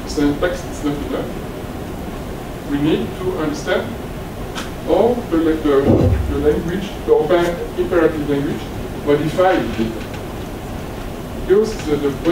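A man lectures calmly into a microphone in a large room, with pauses between phrases.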